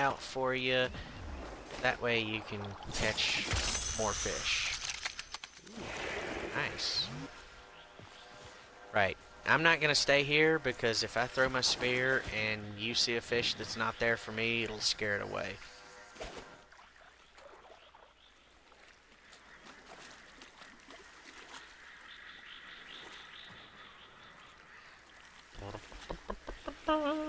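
Water ripples and laps gently.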